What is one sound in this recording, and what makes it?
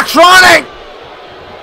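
A man shouts loudly and excitedly into a microphone.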